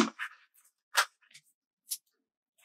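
A sheet of stickers rustles softly as hands handle it.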